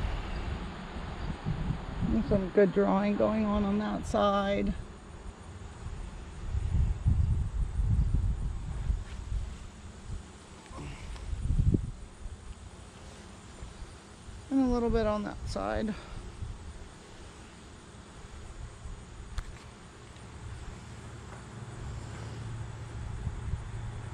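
Wind rumbles across a microphone outdoors.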